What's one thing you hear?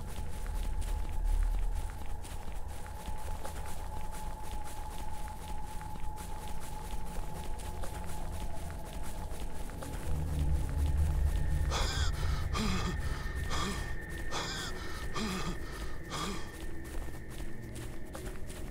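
Footsteps run quickly over sand and grass.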